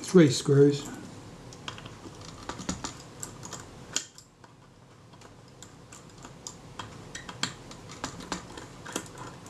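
Small metal parts click and tick as fingers work a mechanism.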